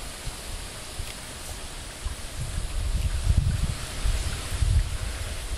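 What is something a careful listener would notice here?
A man breathes out heavily close by.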